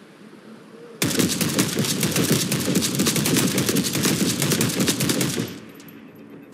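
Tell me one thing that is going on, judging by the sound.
A rifle fires a long, rapid burst at close range.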